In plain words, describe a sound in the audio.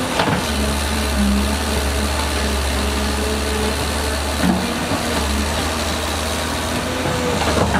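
A diesel excavator engine rumbles steadily.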